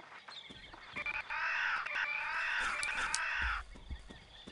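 A flying creature screeches loudly.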